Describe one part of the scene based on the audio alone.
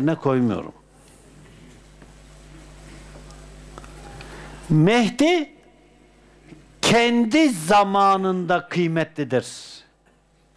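An elderly man speaks calmly and slowly, with long pauses, close by.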